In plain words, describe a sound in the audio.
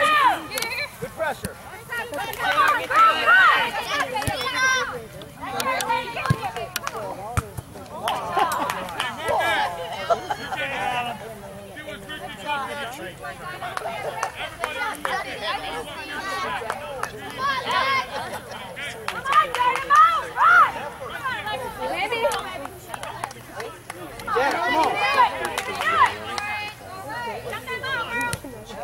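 Young women shout and call out outdoors in the open.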